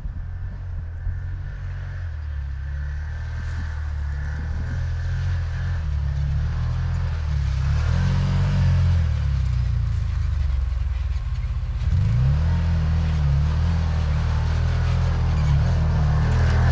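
An off-road vehicle engine rumbles as it drives closer, growing louder.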